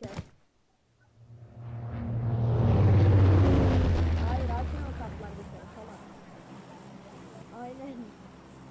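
A propeller plane's engines drone loudly as it passes close by, then fade.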